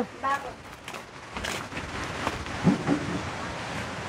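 Plastic chairs knock as they are set down.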